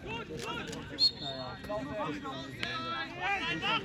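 A referee's whistle blows once.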